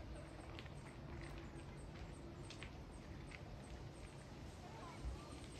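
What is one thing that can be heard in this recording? Wind rustles through the leaves of tall trees outdoors.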